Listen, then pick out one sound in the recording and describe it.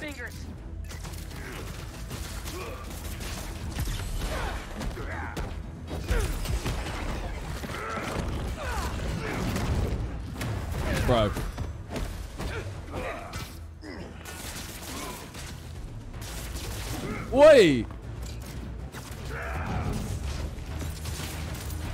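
A young man talks into a microphone with animation, close up.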